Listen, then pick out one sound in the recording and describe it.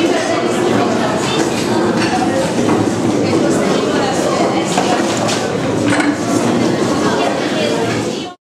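A large crowd of men and women talk all at once in a big, echoing room.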